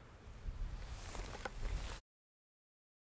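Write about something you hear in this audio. A ukulele is strummed.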